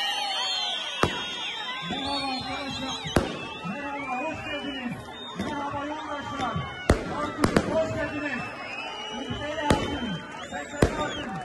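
Fireworks pop and crackle overhead.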